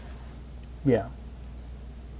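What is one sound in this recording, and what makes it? A man speaks a brief word close to a microphone.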